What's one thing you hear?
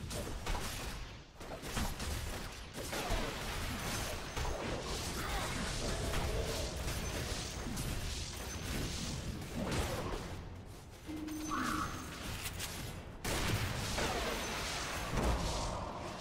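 Game combat sounds clash and thump, with many rapid hits.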